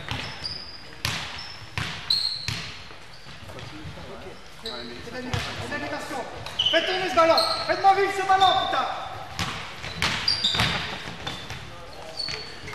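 A basketball bounces on the floor with hollow thuds.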